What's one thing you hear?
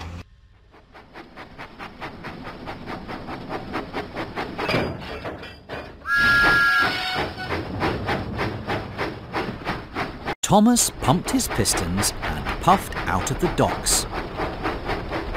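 A steam engine chuffs in a steady rhythm.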